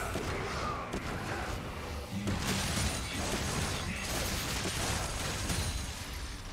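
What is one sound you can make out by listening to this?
Magic spells whoosh and burst in a fast fight.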